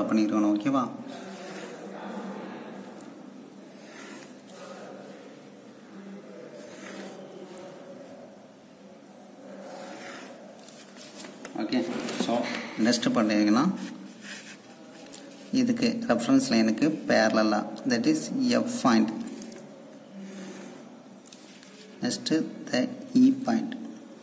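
A pen scratches along a ruler on paper.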